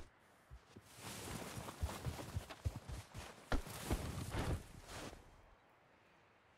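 Boots crunch through deep snow in quick steps.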